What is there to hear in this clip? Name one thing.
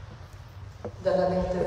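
A woman begins speaking through a loudspeaker in a large hall.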